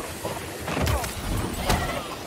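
An explosion booms and fire roars.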